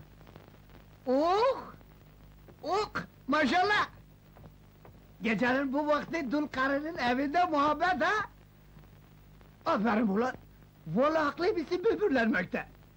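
A middle-aged man speaks excitedly and loudly nearby.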